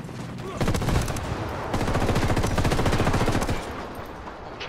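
An automatic rifle fires rapid bursts close by.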